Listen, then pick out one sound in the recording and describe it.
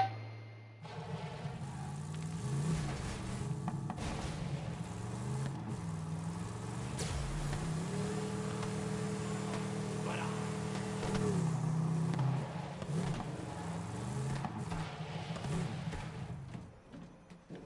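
A small buggy engine revs and roars, rising and falling in pitch.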